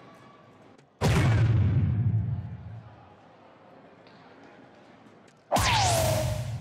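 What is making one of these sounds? A dart strikes an electronic dartboard with a sharp thud.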